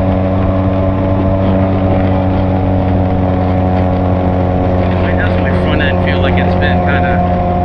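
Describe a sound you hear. Wind rushes past a motorcycle rider's helmet.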